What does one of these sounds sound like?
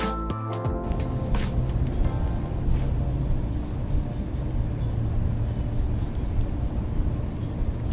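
A fishing reel whirs softly as its handle is cranked.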